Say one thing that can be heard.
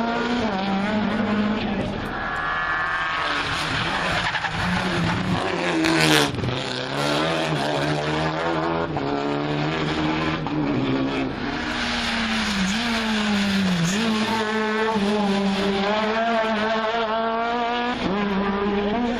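A rally car engine roars and revs hard as the car speeds past.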